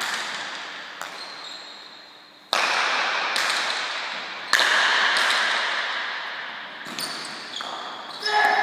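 A hard ball smacks against a wall and bats, echoing loudly through a large hall.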